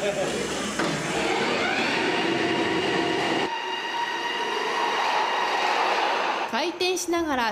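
A machine whirs and hums, rising in pitch and then holding steady.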